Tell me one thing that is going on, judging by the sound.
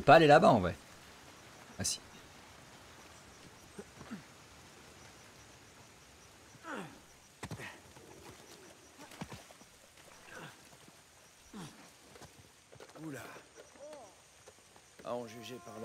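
A man talks in short bursts into a close microphone.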